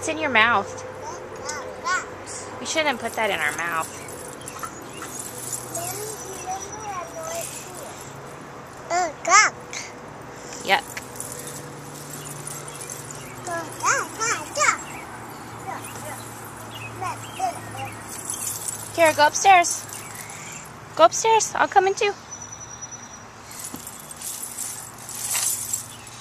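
Metal coins on a dress jingle softly as a toddler moves.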